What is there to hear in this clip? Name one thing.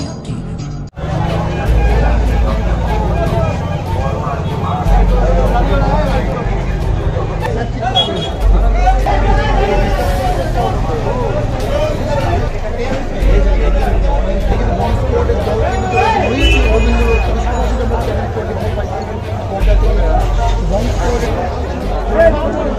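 A crowd of men and women chatters all around.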